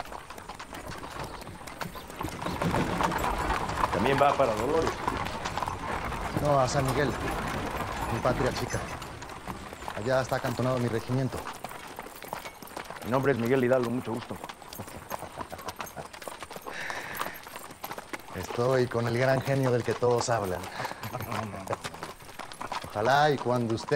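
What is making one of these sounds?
Horses' hooves clop on dry ground.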